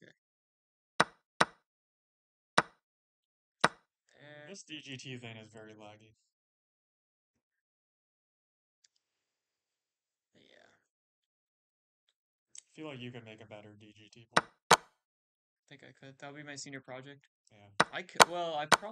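Chess pieces are set down with knocks.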